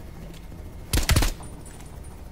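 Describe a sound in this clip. A rifle fires two quick shots.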